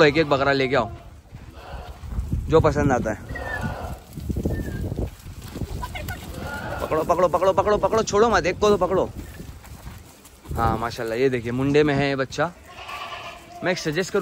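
Goats bleat loudly and repeatedly nearby.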